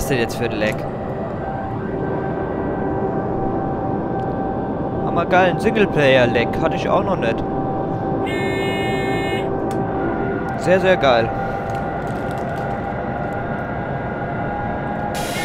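An electric train motor hums steadily from inside the cab.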